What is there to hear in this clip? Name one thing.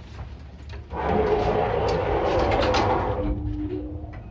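Elevator doors slide shut with a rumble.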